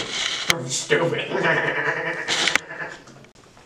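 A young man speaks close by, with a strained voice.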